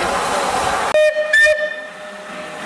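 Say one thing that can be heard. A steam locomotive whistle gives a short, loud blast.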